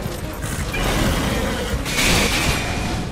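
A fiery blast bursts against crystal.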